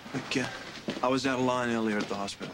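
A man speaks firmly, close by.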